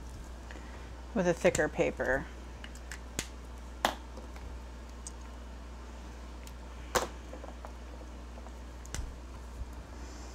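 A marker cap clicks off and snaps back on.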